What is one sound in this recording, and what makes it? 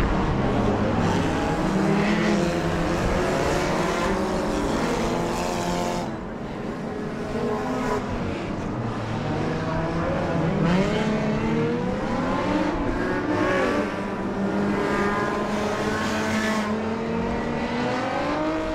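Car engines roar and rev around a track.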